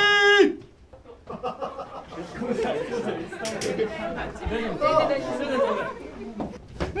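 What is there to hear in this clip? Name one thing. Young people chatter and laugh nearby.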